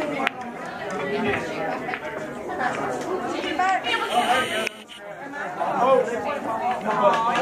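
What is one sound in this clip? A crowd of young men and women chatter and shout loudly nearby, in an echoing room.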